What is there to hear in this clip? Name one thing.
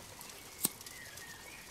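A lighter clicks once.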